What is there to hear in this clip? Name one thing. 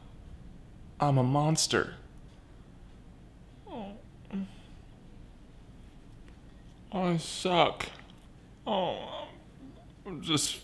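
A man groans with his mouth full of cake.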